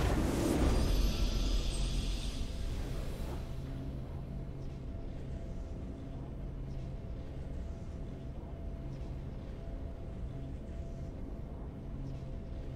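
Soft, steady game music plays.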